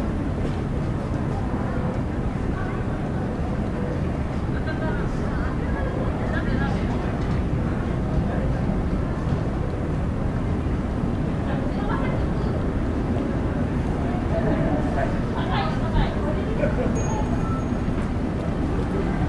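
Several people talk faintly in the distance outdoors.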